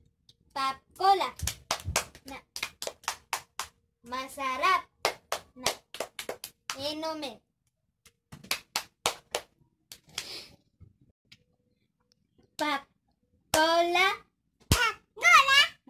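Hands clap together in a quick rhythm.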